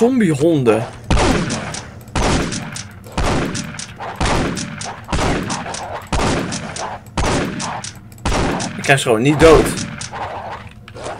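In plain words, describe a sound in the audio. Shotgun blasts boom again and again in quick, steady succession.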